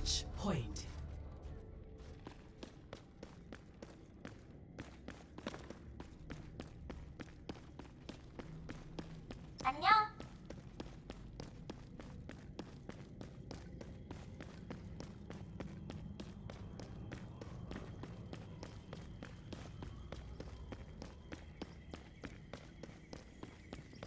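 Quick footsteps tap steadily on a stone floor.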